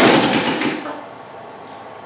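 A lawn mower rattles and scrapes across a metal table.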